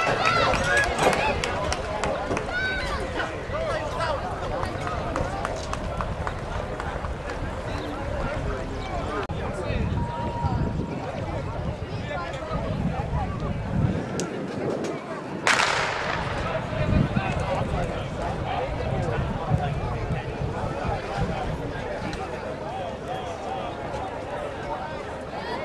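A crowd of spectators cheers and chatters outdoors.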